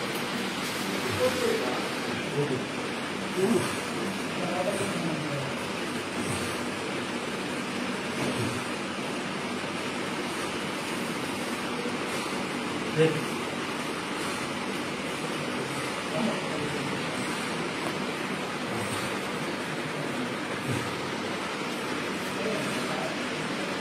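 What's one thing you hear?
An elderly man moans weakly close by.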